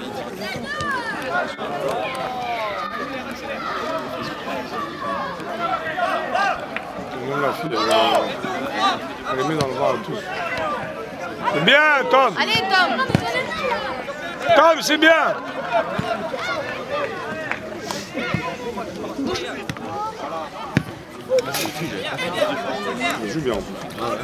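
Young players shout and call to each other across an open football pitch.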